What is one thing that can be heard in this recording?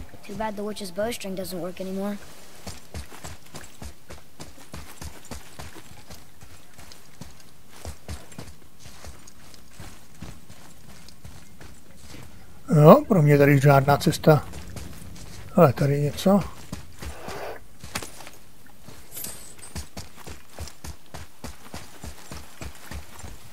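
Heavy footsteps run and thud on stone.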